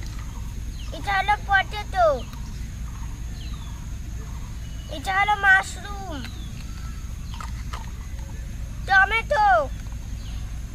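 A young girl speaks in short, lively bursts close by.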